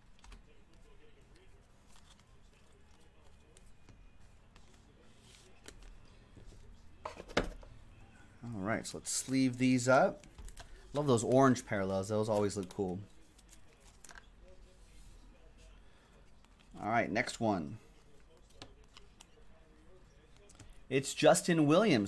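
Trading cards rustle and slide as they are shuffled by hand.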